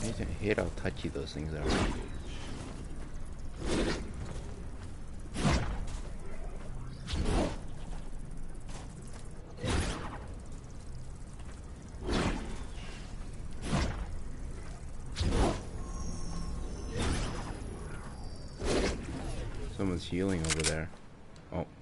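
A weapon fires in regular bursts in a video game.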